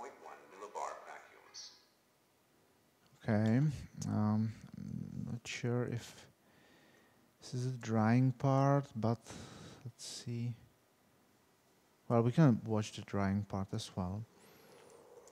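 A middle-aged man speaks calmly in an echoing room.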